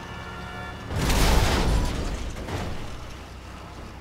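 Truck tyres skid and scrape on the road.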